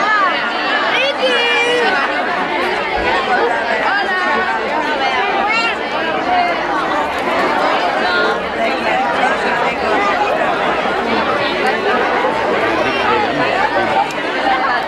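A crowd of adults and children chatters and calls out excitedly nearby, outdoors.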